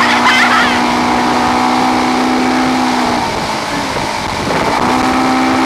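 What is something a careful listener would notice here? Water churns and splashes loudly in the boat's wake.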